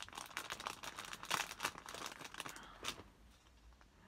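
A plastic wrapper crinkles and rustles between fingers.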